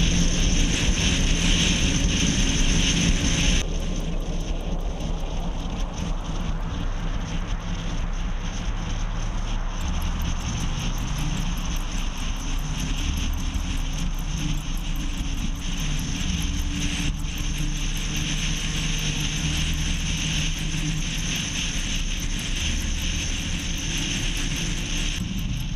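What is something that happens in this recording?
Tyres roll on the road with a steady rush.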